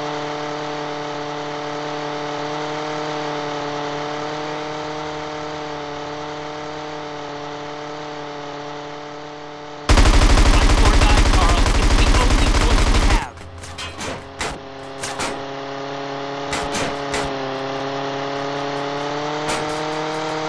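A small propeller plane engine drones steadily.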